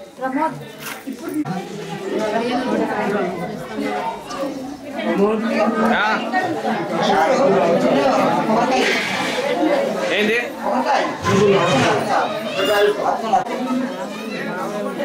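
A crowd of women chatter and talk over one another nearby.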